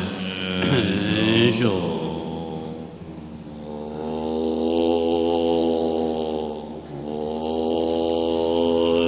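A large group of men chant together in low, steady droning voices.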